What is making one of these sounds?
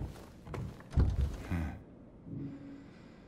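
A key turns in a door lock with a metallic click.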